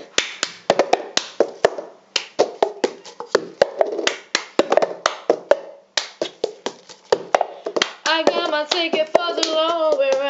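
A paper cup knocks and taps against a table in rhythm.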